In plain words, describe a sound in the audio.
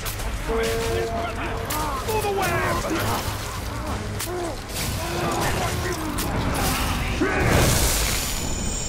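Swords and blades clash and strike repeatedly in a fierce battle.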